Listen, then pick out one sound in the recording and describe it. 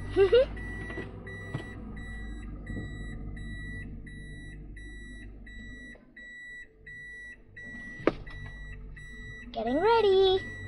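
A car's reversing warning beeps steadily and repeatedly.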